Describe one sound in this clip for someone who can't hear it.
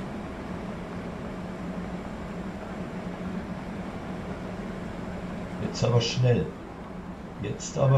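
A standing electric train hums steadily.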